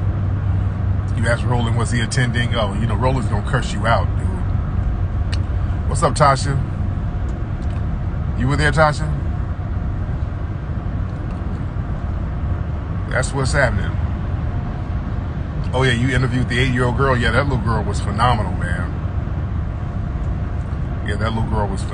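A car engine hums low and steady inside the cabin.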